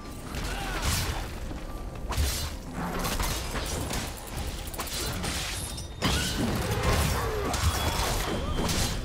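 Spell effects whoosh and crackle in a fast fight.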